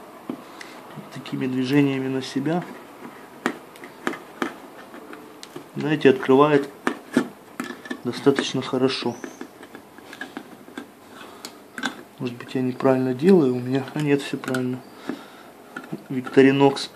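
A can opener clicks and crunches as it cuts through a tin lid.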